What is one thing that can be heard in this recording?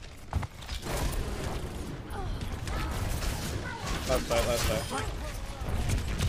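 Game weapons fire with sharp zaps and whooshes.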